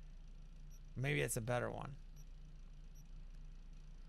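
Soft electronic menu blips sound as selections change.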